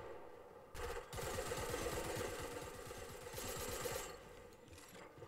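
Hammer blows knock rapidly as walls are built.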